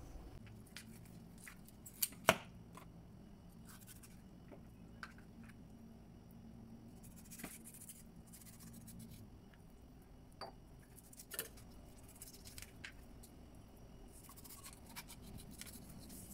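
A knife scrapes scales off a fish.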